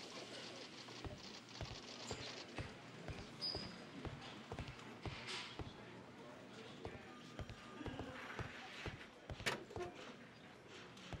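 Footsteps tread on a wooden floor indoors.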